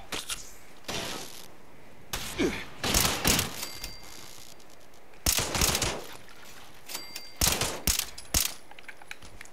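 A rifle fires in short bursts.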